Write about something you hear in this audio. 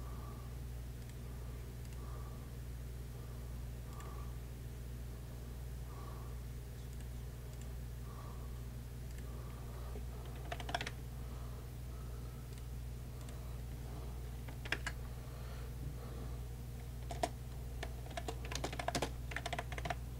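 A man speaks quietly into a headset microphone, close by.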